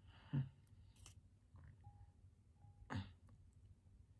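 A spatula clinks against a glass cup.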